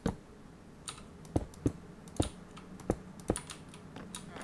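Glass blocks are set down with short, quick clicks.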